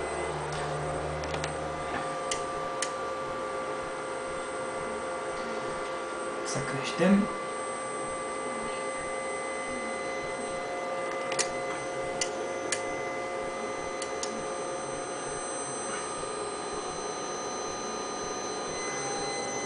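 An electronic instrument hums steadily.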